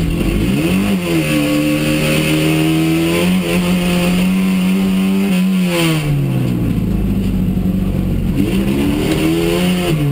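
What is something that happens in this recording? Gravel rattles and pings against the underside of a car.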